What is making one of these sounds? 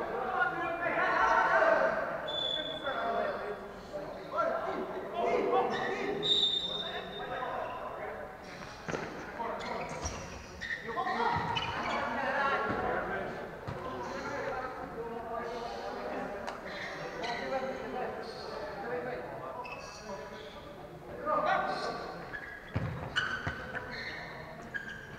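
Players shout to each other in a large echoing hall.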